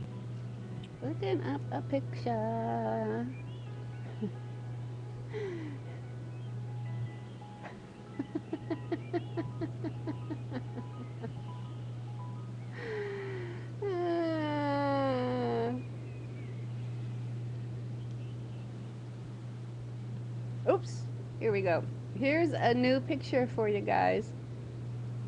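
A woman speaks casually, close up.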